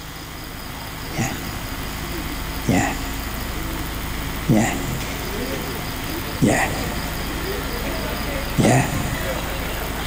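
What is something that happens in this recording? An elderly man sobs and sniffs quietly near a microphone.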